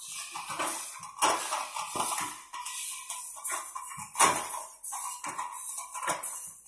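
A metal file rasps against saw teeth in short, repeated strokes.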